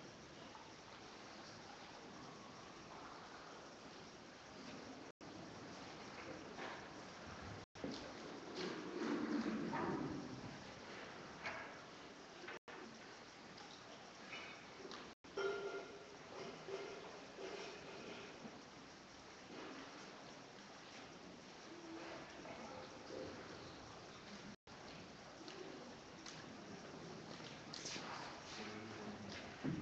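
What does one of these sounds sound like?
People in a crowd murmur and talk quietly in a large echoing hall.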